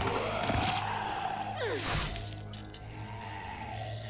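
A blade stabs into flesh with a wet thud.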